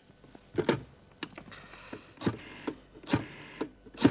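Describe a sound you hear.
A phone's dial whirs as a man dials.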